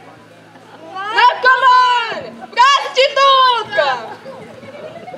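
A young woman sings loudly and dramatically through a microphone.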